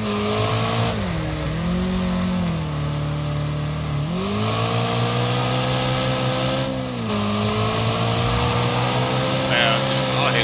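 Tyres skid and scrabble on loose dirt.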